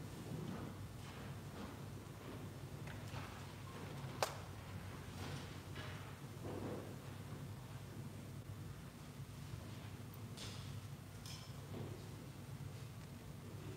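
Metal chains clink softly as a censer swings.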